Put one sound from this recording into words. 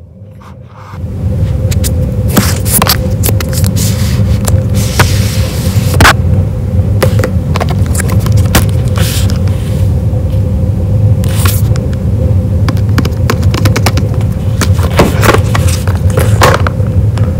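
Fingernails tap and scratch on a cardboard box.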